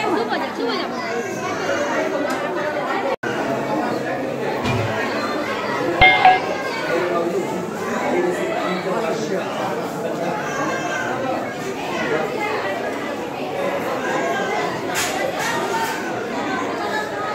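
A crowd of men and women talks and murmurs all around in a busy, echoing space.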